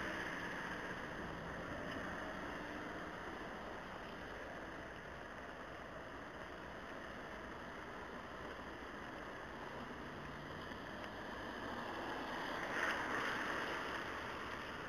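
Tyres hiss steadily on a wet road.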